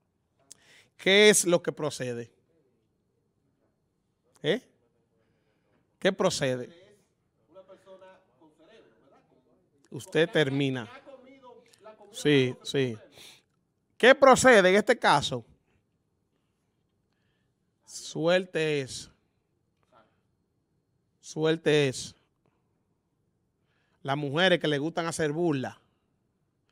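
A man talks with animation into a microphone, in short bursts with pauses.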